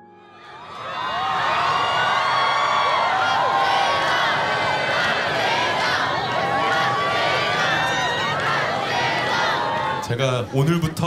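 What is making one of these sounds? A large crowd of young women screams and cheers loudly outdoors.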